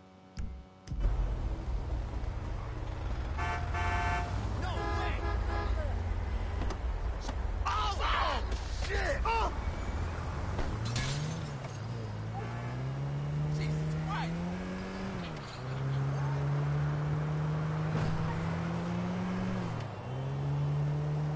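City traffic hums steadily around.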